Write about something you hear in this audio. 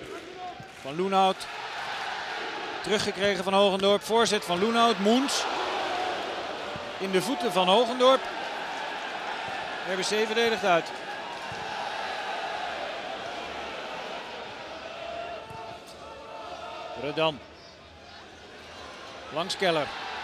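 A large stadium crowd murmurs and cheers outdoors.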